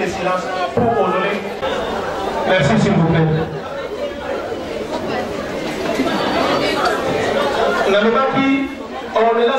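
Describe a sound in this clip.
A crowd of adults chatters.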